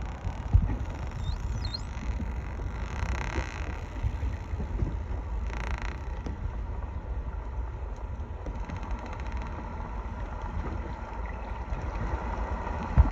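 Choppy waves slap and splash close by.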